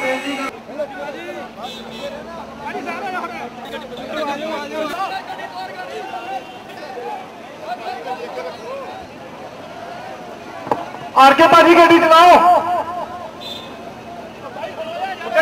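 A crowd of men chatter and call out close by, outdoors.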